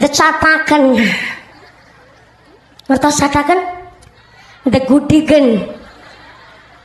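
A young woman speaks with animation through a loudspeaker, in bursts with pauses.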